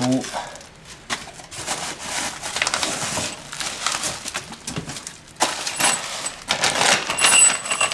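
A cardboard box scrapes and thumps as it is moved.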